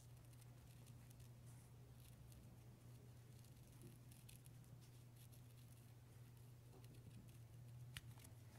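Scissors snip softly through paper.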